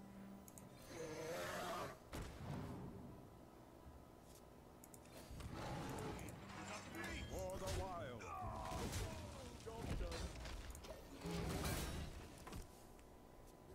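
Video game sound effects whoosh and clash in short bursts.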